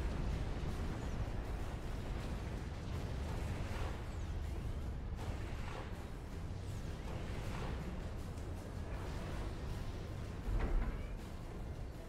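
Explosions and weapon fire rumble in a battle.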